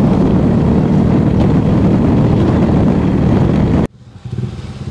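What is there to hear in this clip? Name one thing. Wind buffets the microphone loudly.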